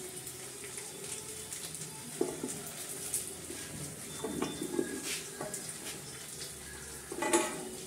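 Florets snap as cauliflower is broken apart by hand.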